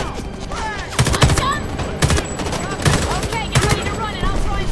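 Gunfire cracks in short bursts nearby.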